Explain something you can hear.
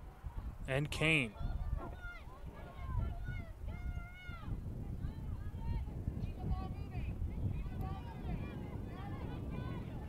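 Young women shout to each other outdoors in the distance.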